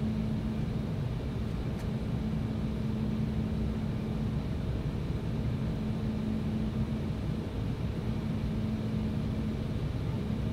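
Jet engines drone steadily in a low, constant roar from inside an airliner cabin.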